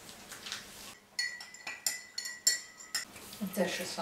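A spoon clinks against a mug.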